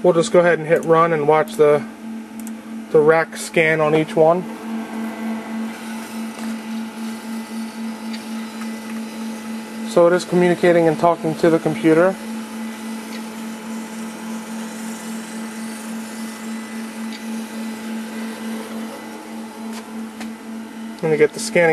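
Machines hum steadily nearby.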